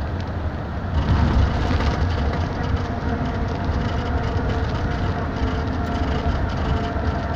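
Game music plays from a small tablet speaker.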